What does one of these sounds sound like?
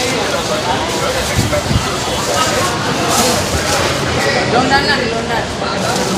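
Plastic bags rustle as they are handled.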